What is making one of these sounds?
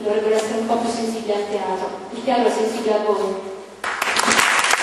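A woman speaks into a microphone with animation, her voice amplified in a room.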